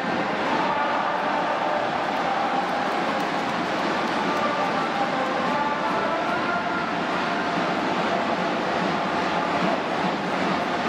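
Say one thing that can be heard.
A large stadium crowd cheers and chants steadily throughout.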